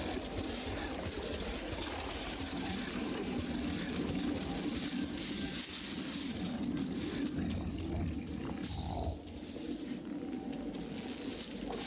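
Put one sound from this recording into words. Light footsteps patter quickly on snow.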